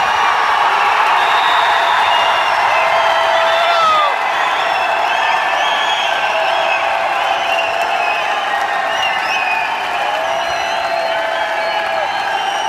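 A large crowd cheers and shouts loudly in an echoing hall.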